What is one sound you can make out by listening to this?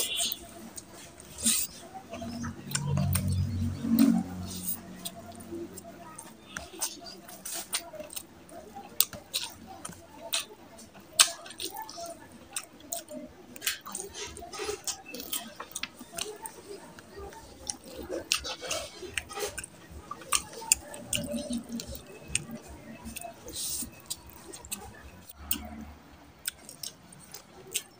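Sticky food squelches and crackles as fingers tear it apart.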